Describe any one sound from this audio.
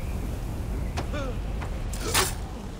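Blows land with sharp thuds in a scuffle.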